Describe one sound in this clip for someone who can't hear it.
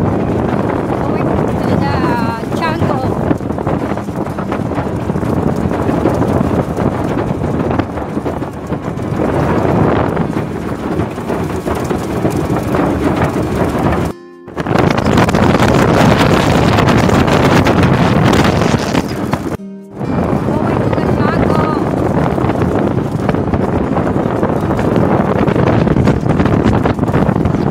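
An outboard motor roars steadily.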